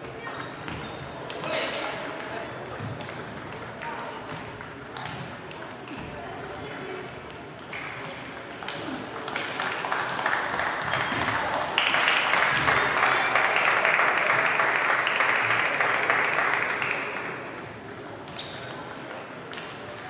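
Table tennis balls click on tables and paddles in a large echoing hall.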